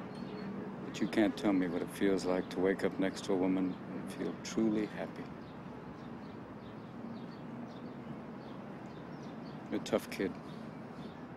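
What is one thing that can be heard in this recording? A middle-aged man speaks quietly and softly, close by.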